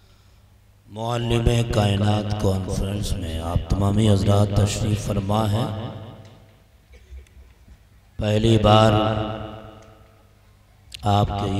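A man sings loudly into a microphone through loudspeakers in a large echoing space.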